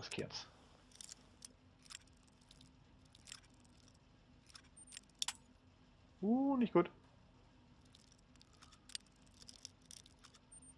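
A metal lock pick scrapes and clicks softly inside a lock.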